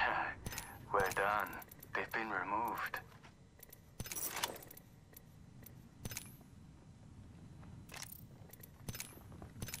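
Short electronic clicks sound as items are picked up.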